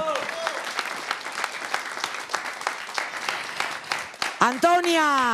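An audience claps steadily.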